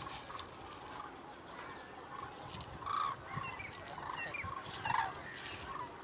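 Garlic skins crackle as they are peeled by hand.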